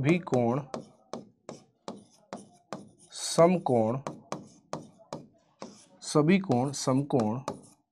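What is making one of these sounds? A man speaks with animation, heard close through a microphone.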